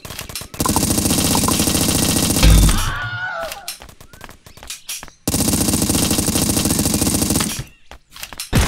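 Rapid gunfire rattles in fast bursts.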